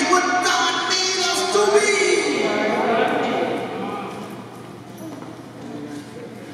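A man speaks with animation into a microphone, heard through loudspeakers in an echoing hall.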